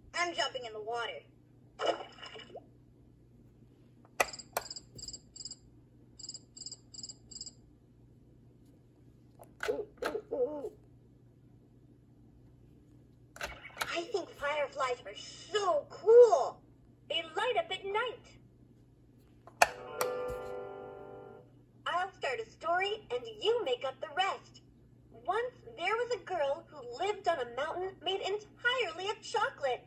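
A toy plays cheerful recorded singing and sounds through a small tinny speaker.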